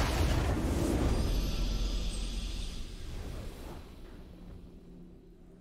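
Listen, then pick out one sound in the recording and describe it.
A triumphant victory fanfare swells and fades.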